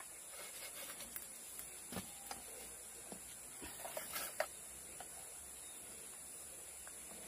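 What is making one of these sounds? A ladle clinks and scrapes in a metal pot.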